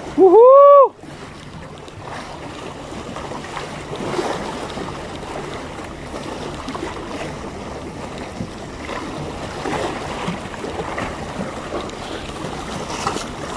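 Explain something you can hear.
Small waves wash and splash against rocks.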